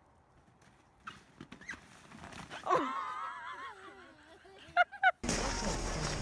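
Children shout and laugh outdoors.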